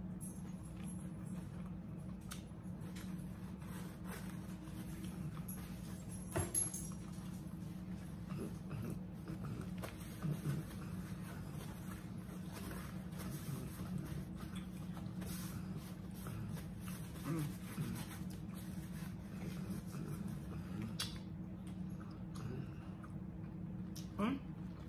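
A middle-aged woman chews and smacks her lips close to a microphone.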